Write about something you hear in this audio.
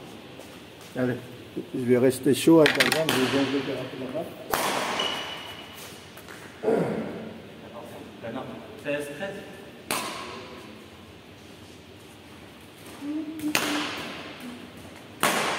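A young man calls out across the hall.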